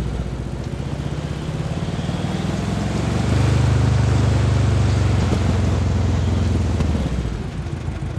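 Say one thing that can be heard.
A vehicle engine rumbles steadily, then quiets.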